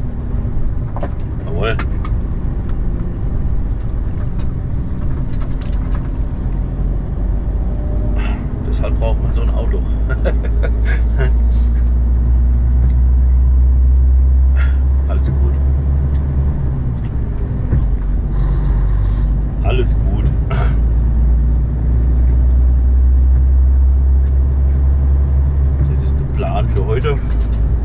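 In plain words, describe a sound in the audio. A vehicle engine hums low and steady.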